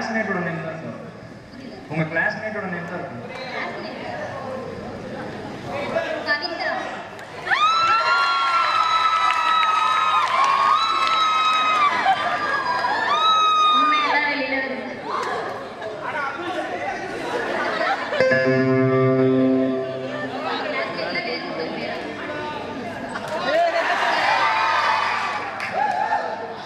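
Young women speak with animation through a loudspeaker in a large echoing hall.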